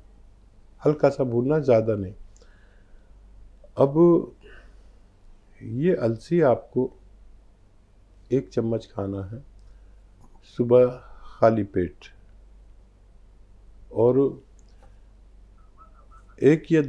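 A middle-aged man speaks calmly into a clip-on microphone, with pauses between phrases.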